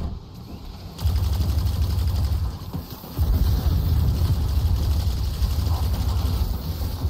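Rapid gunfire booms heavily and loudly.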